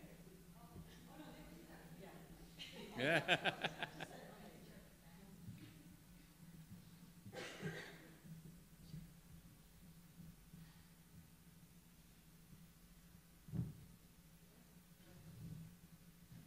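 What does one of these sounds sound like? A woman speaks calmly at a distance in a large echoing hall.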